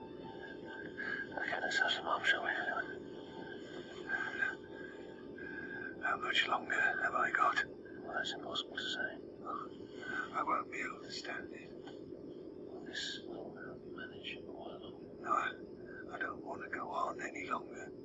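A man speaks quietly and slowly nearby.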